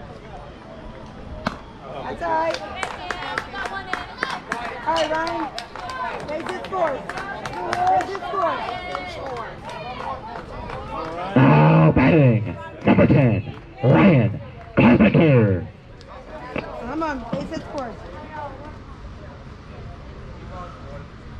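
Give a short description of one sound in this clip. Young players and spectators chatter and call out nearby.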